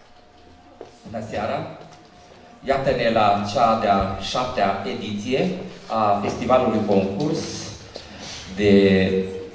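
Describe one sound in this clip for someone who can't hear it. A man speaks into a microphone over a loudspeaker in a large hall.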